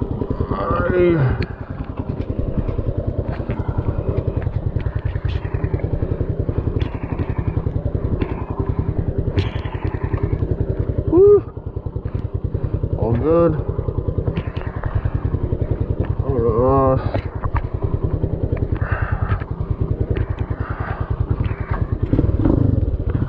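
A motorcycle engine idles with a steady, fast putter close by.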